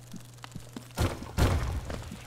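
A blade slashes with sharp, quick hits.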